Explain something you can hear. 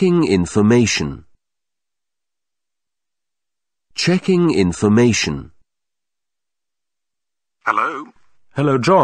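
A man speaks clearly and slowly into a microphone, reading out.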